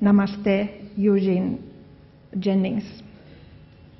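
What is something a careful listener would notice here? An older woman speaks into a microphone, amplified over loudspeakers.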